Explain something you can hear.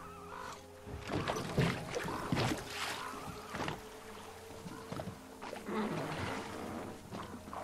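Water splashes against a moving boat.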